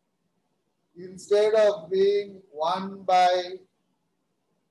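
A man speaks calmly through an online call, as if lecturing.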